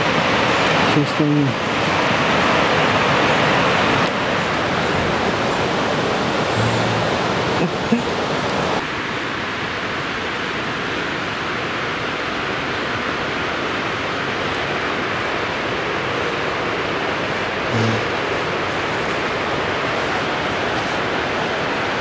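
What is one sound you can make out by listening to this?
Hikers push through rustling brush and grass.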